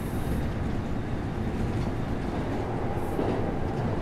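Train wheels clatter over a bridge.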